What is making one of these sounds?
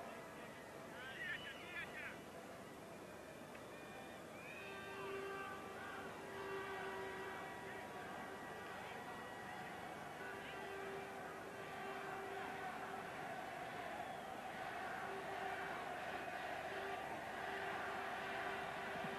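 A large crowd roars and cheers in a stadium, swelling toward the end.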